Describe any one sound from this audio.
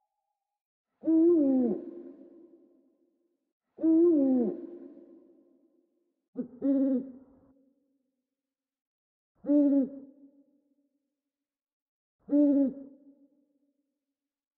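An owl hoots in low, repeated calls that echo and fade.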